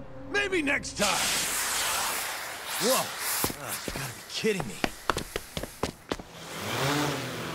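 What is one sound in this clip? A smoke bomb bursts with a loud hiss.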